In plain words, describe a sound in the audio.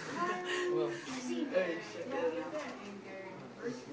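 A teenage boy laughs.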